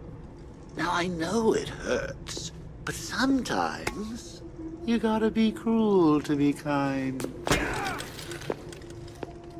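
A man speaks in a mocking, theatrical voice.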